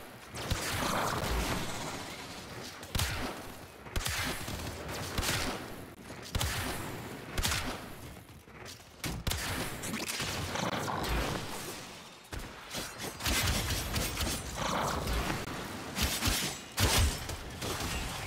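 Explosions boom in a game.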